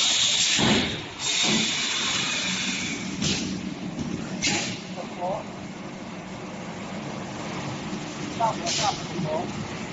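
Machine parts thump and hiss in a repeating cycle.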